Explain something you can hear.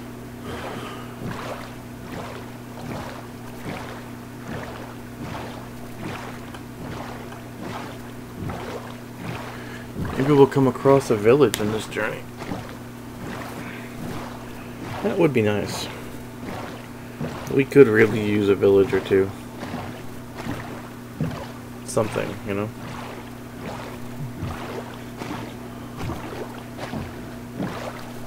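Oars splash rhythmically in water as a boat is rowed.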